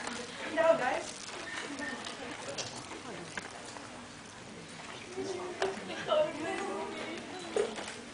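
A crowd of young people talks and shouts nearby in a noisy gathering.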